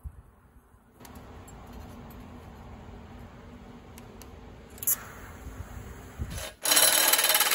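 A welding torch hums and crackles steadily.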